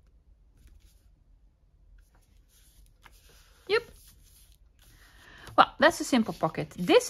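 Paper rustles softly as hands fold and press it flat.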